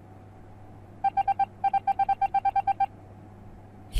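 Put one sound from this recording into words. Rapid short electronic beeps sound in a quick series.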